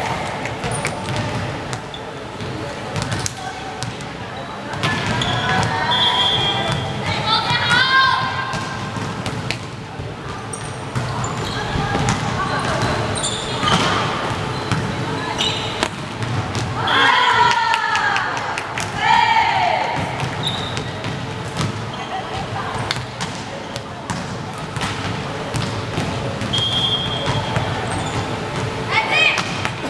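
A ball thumps against hands and arms in a large echoing hall.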